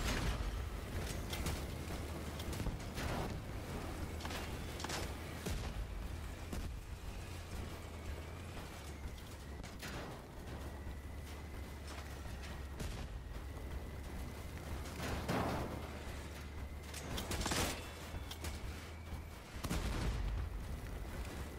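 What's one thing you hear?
Loud explosions boom again and again.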